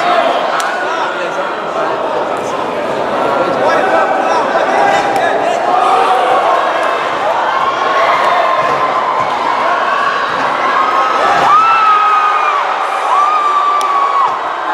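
A crowd shouts and cheers loudly in a large hall.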